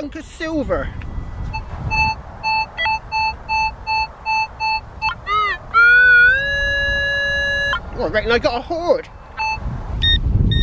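A metal detector beeps in short repeated tones, then gives a long warbling tone.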